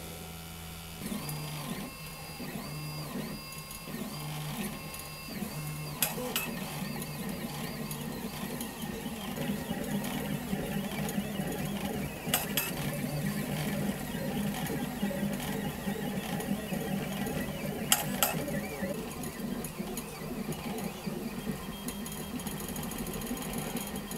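A 3D printer's stepper motors whir and buzz in short rising and falling tones.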